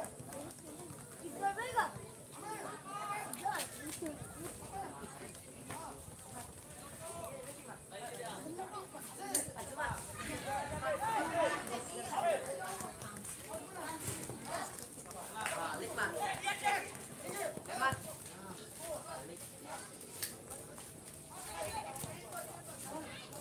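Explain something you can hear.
Young male players shout to each other across an open field.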